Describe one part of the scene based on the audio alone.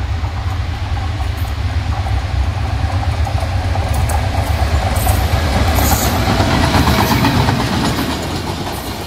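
A diesel locomotive engine rumbles loudly as it approaches and passes close by.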